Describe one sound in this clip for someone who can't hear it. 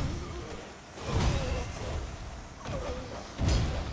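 Heavy blows thud and rumble.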